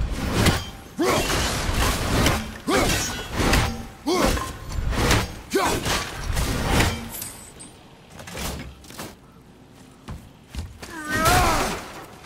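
Wooden crates smash and splinter with loud cracks.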